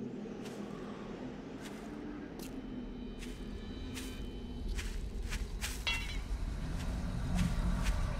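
Footsteps crunch steadily through dry grass.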